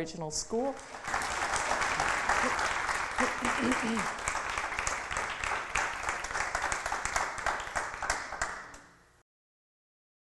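An audience claps and applauds steadily, then the applause fades out.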